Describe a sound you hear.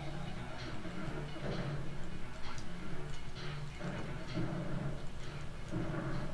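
Upbeat video game music plays steadily.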